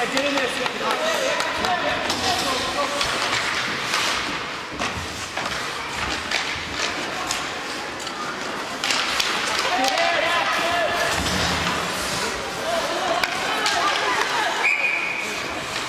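Spectators shout and cheer in an echoing rink.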